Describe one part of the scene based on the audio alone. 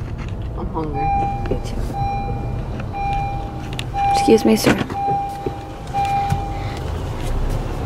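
A car's reversing sensor beeps steadily.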